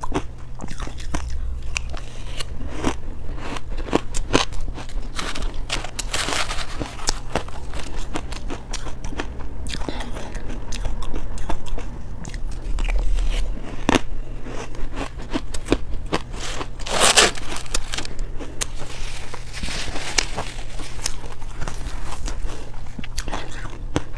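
A metal spoon scrapes and scoops through crushed ice.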